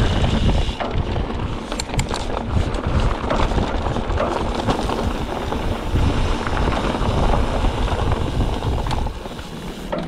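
Bicycle tyres roll and crunch over a rough dirt trail.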